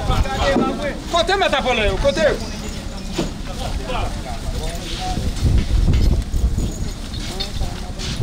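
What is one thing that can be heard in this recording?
Plastic bags rustle as they are pulled over bunches of bananas.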